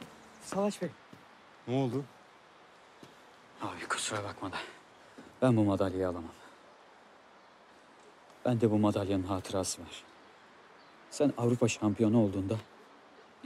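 A young man speaks in a low, quiet voice close by.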